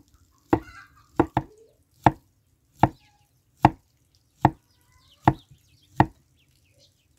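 A cleaver chops through soft fruit onto a wooden block in steady, sharp knocks.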